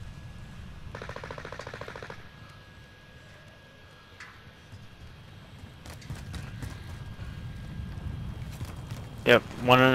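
Footsteps thud quickly on hard ground and stairs.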